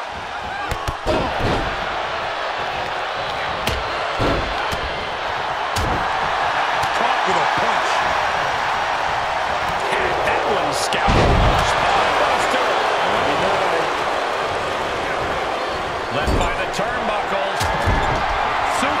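Heavy thuds of bodies slamming onto a wrestling ring mat.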